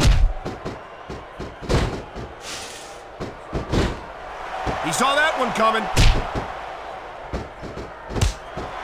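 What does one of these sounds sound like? Heavy blows thud against bodies in a wrestling bout.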